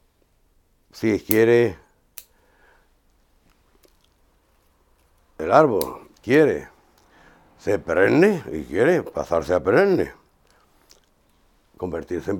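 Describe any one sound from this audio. An older man speaks calmly, close by, in short phrases.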